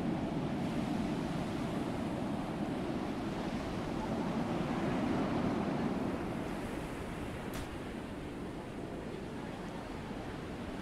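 Water rushes steadily along a ship's hull.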